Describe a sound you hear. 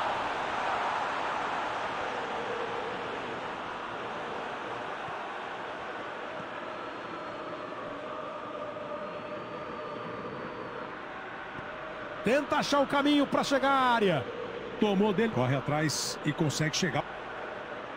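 A stadium crowd murmurs and roars steadily in the background.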